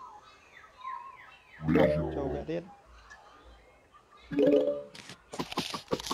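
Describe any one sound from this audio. Game sound effects chime and pop.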